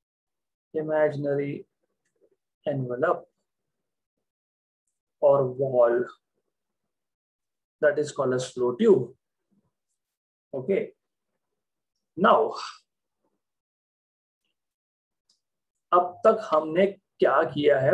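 A young man speaks calmly into a close microphone, explaining in short phrases.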